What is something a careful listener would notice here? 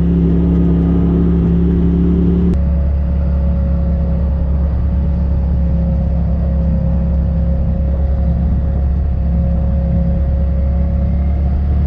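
An off-road vehicle's engine hums steadily at low speed.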